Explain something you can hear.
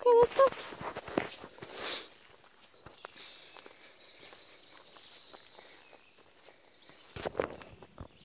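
A dog's paws patter over leaves and dirt.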